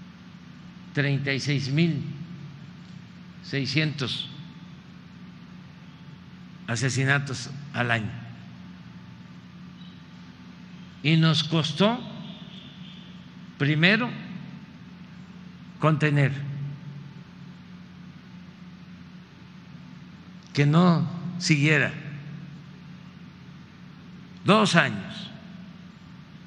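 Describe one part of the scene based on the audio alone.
An elderly man speaks into a microphone in short, emphatic phrases with pauses between them.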